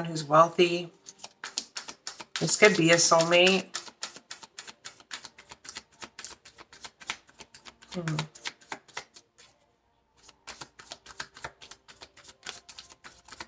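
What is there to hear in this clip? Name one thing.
Playing cards flick and riffle as they are shuffled.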